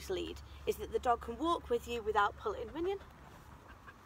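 A young woman speaks brightly and with animation to a dog, close by.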